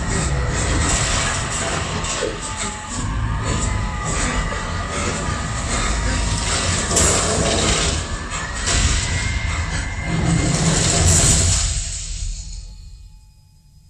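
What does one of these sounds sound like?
A strong sandstorm wind roars and howls.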